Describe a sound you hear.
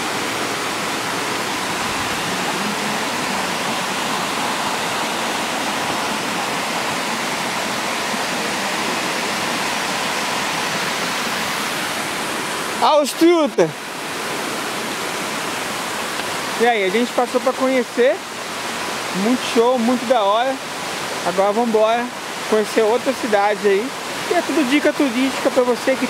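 A waterfall rushes and splashes steadily outdoors.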